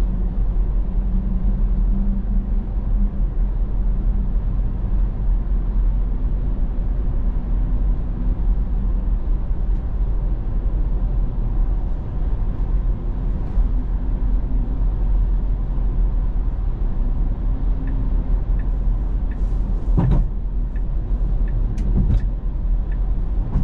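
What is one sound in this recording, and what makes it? Tyres rumble steadily on a road from inside a moving car.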